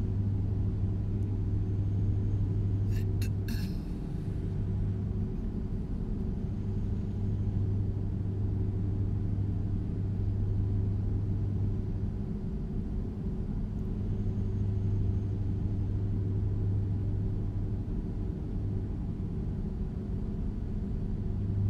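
Tyres hum on the road.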